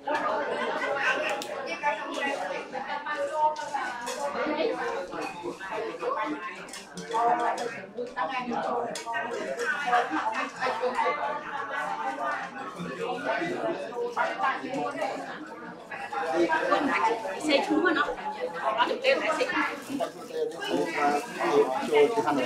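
Several men and women chat at once nearby in a room.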